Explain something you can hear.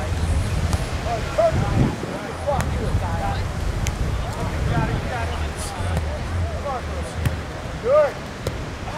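Wind blows across the beach.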